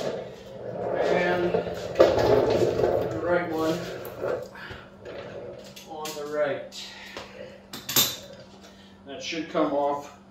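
Metal tools clink and click against a motorcycle.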